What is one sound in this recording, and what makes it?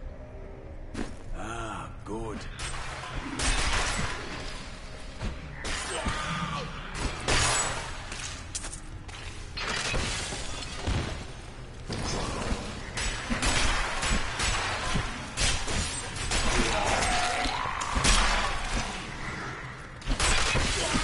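Game combat crashes and thuds as objects smash apart.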